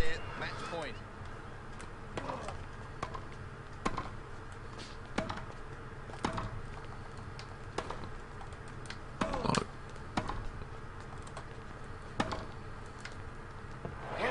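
A tennis ball is struck sharply by a racket, back and forth in a rally.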